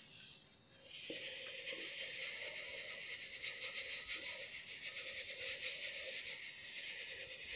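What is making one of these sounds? Water pours into a ceramic cup.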